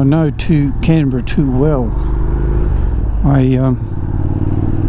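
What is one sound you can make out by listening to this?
A motorcycle engine revs up and drops in pitch with each gear change.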